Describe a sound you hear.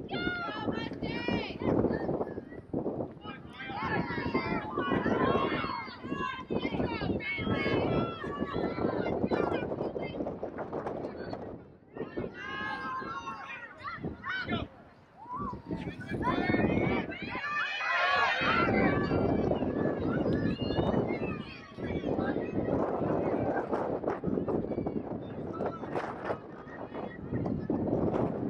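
Young women shout and call to one another outdoors.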